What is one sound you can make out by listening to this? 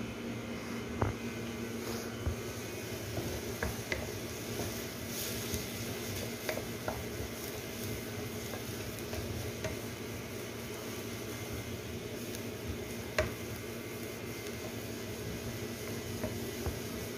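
A wooden spoon scrapes and taps against a frying pan.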